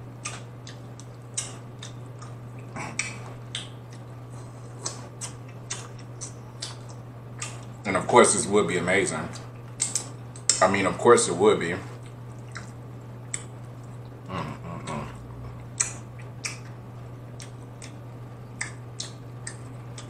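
A young man chews and smacks his lips close to a microphone.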